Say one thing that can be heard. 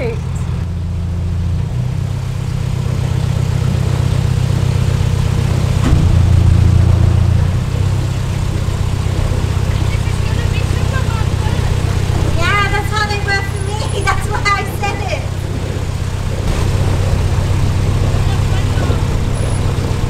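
A boat engine rumbles steadily at low pitch.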